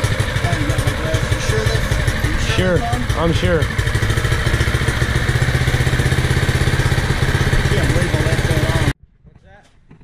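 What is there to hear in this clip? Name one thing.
A small engine runs with a loud, steady rumble close by.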